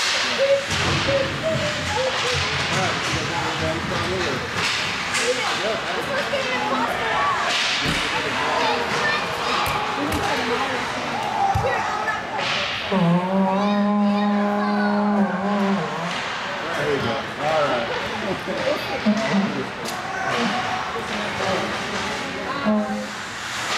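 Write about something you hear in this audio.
Hockey sticks clack against a puck and against each other.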